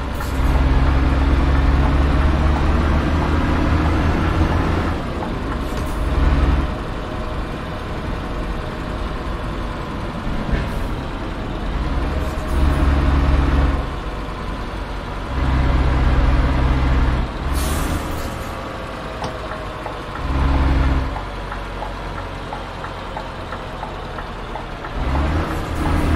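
Tyres hum on a wet road.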